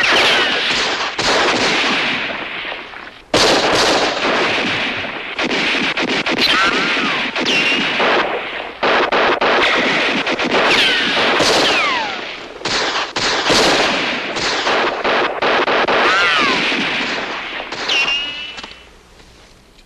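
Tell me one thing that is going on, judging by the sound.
Rifles fire in rapid, echoing bursts of gunshots.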